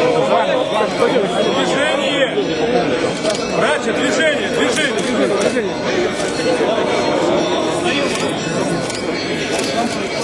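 A dense crowd of men and women chatters and calls out loudly all around, close by, outdoors.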